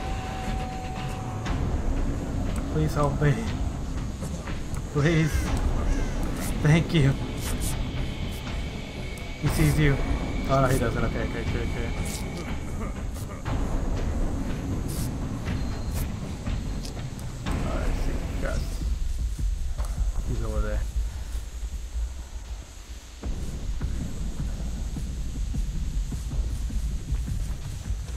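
Footsteps rustle through grass and dirt.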